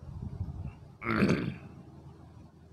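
A middle-aged man speaks briefly and calmly into a microphone.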